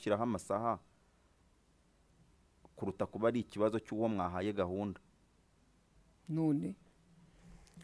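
A man speaks into a close microphone in short, animated bursts with pauses between them.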